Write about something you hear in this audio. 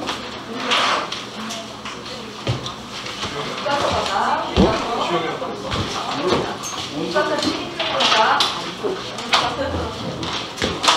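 A woman speaks clearly to a room, in a slightly echoing space.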